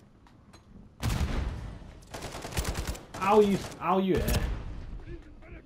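Gunfire bursts out loudly.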